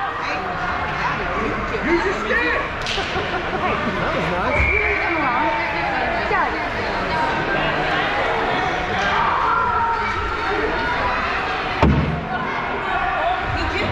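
Children shout and call out across a large echoing rink.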